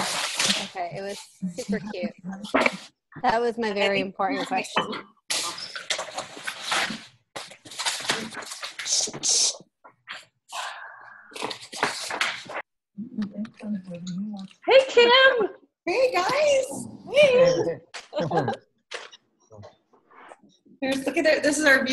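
Several women talk with animation over an online call.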